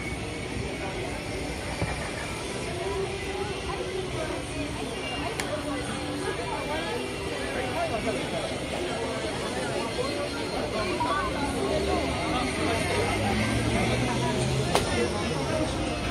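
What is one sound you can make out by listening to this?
A dense crowd of people chatters all around outdoors.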